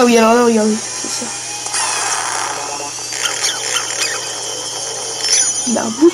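A vacuum whirs and sucks loudly.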